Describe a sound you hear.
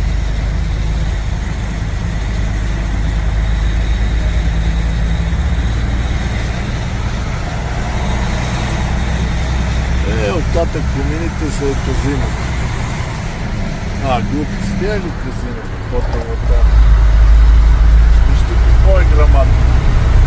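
A car's tyres and engine rumble steadily on a highway.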